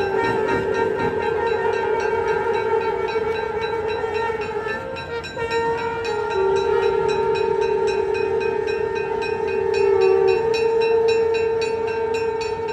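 Men sing a slow chant, loud over loudspeakers.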